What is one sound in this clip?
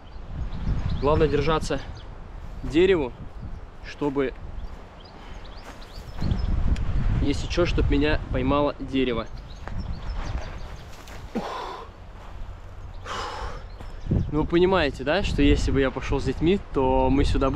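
A young man talks breathlessly, close by.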